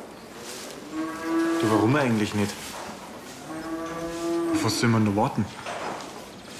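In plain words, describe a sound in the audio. Calves moo nearby.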